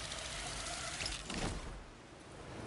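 A metal cable hisses as someone slides down it.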